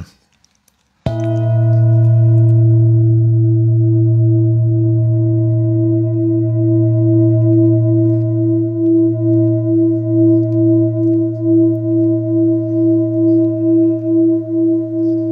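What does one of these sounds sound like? A singing bowl is struck and rings on with a steady, slowly pulsing hum.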